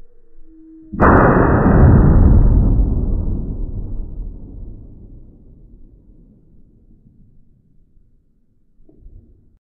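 A rifle fires a single loud shot that booms and slowly fades outdoors.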